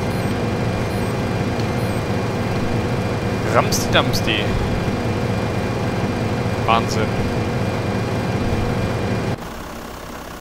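A combine harvester engine idles with a low drone.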